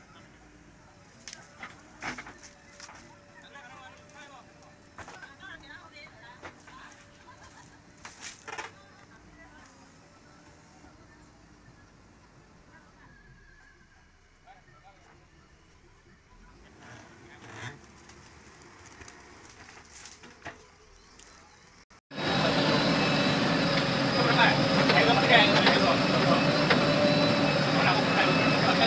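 Soil and roots thud and crunch as a digger bucket drags them.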